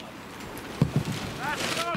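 A football is kicked with a thump.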